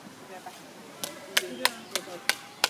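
A small child knocks on a metal pole with sharp clanks.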